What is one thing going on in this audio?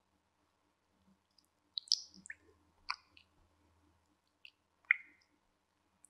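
A spatula scrapes and clinks against a glass bowl.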